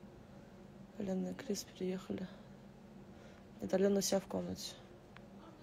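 A young woman speaks softly and close up, in short bursts.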